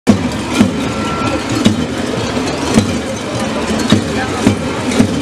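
Large bells clang loudly in a rough rhythm.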